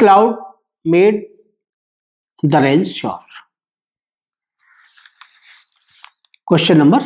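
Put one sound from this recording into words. A middle-aged man reads aloud calmly, close to a microphone, in short phrases.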